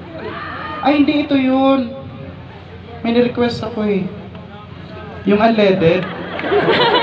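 A singer's voice carries loudly through outdoor loudspeakers in short phrases.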